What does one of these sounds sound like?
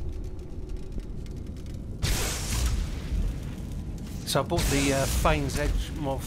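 A sword swings and strikes against metal.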